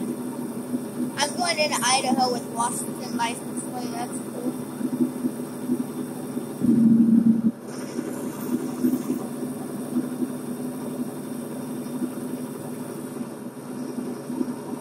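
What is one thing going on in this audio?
A truck engine drones steadily while driving.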